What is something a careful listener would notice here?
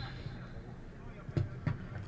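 A football is kicked hard.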